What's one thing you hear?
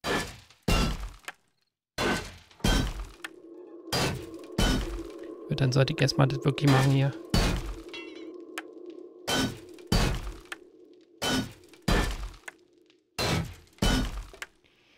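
Heavy footsteps thud on wooden stairs at a steady pace.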